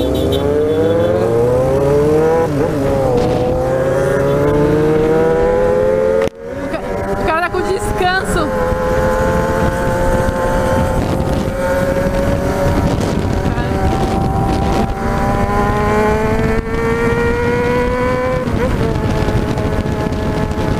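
A motorcycle engine roars close by, its pitch rising as it speeds up and dropping at each gear change.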